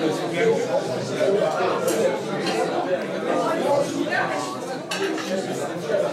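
An elderly man speaks loudly.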